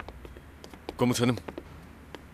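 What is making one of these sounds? A man speaks briefly and firmly nearby.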